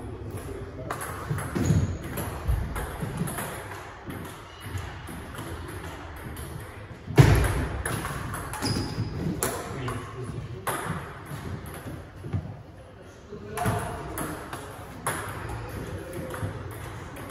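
Footsteps squeak and shuffle on a wooden floor.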